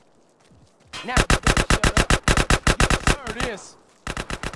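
A gun fires in rapid bursts, loud and close.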